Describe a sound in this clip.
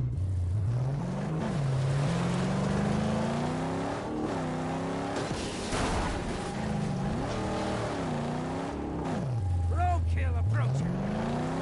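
A car engine roars and revs up and down as it drives.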